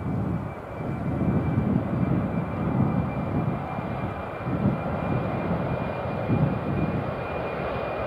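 Wind buffets outdoors with low rumbling gusts.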